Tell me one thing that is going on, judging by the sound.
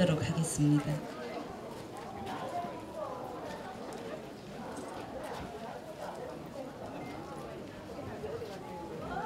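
A crowd murmurs quietly in the open air.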